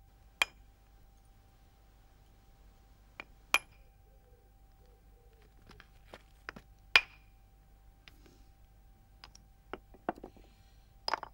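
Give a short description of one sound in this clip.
A hammerstone strikes flint with sharp, ringing clicks and knocks.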